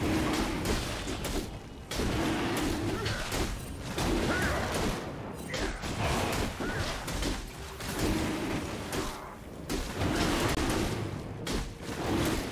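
Game spell effects crackle and hits thud in a busy fight.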